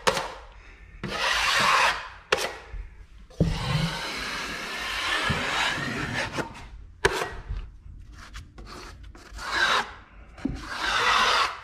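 A metal scraper scrapes across a hard wall surface.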